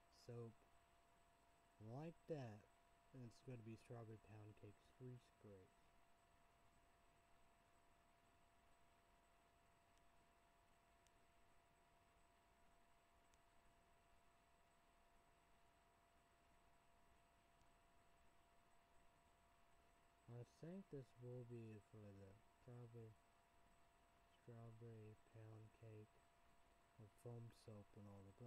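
A young man speaks quietly and calmly close to a microphone, with long pauses.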